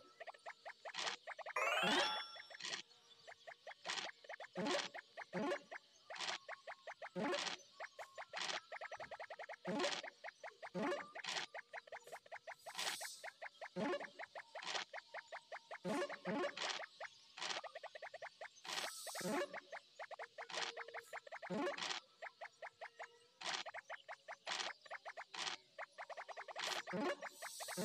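Game dice rattle briefly as they roll, again and again.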